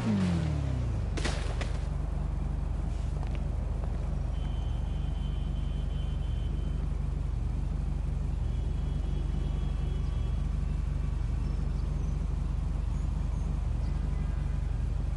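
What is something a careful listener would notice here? A fallen motorcycle's engine idles with a low steady rumble.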